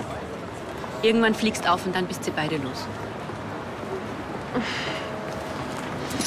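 A second young woman answers softly.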